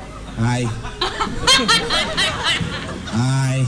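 A young woman laughs loudly over an online call.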